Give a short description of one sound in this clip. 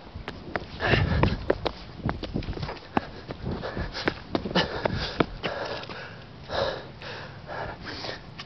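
Footsteps slap on pavement, coming closer.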